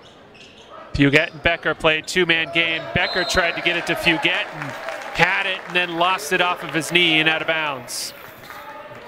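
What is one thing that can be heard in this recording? Young men on a team bench cheer and shout.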